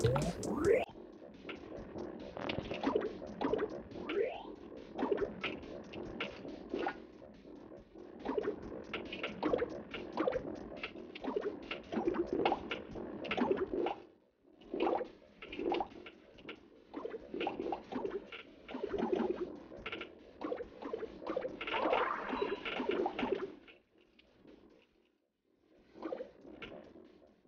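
Video game sound effects beep and chirp through a small speaker.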